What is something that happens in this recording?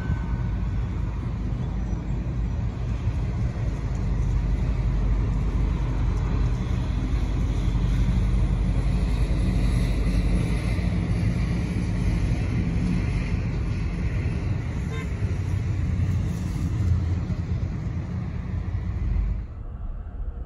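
A car rolls slowly over pavement, with a low rumble heard from inside the car.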